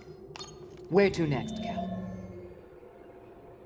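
A hologram switches on with a sudden sweeping whoosh.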